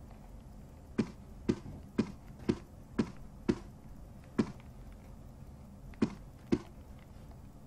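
Footsteps tap across a floor at a steady pace.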